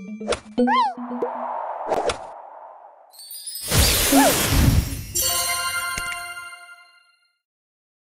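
Cheerful game sound effects chime and sparkle.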